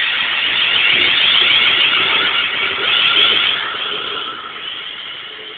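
A train passes close by with a loud rumble and squeal of wheels.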